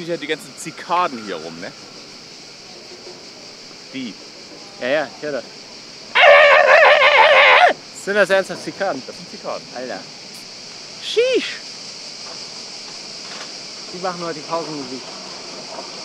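A man talks casually nearby, outdoors.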